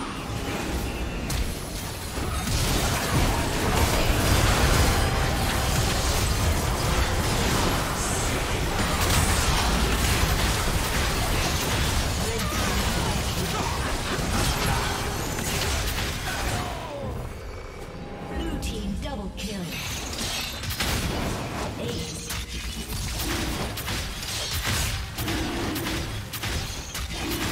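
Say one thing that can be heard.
Spell blasts, hits and clashes of a video game battle sound in quick bursts.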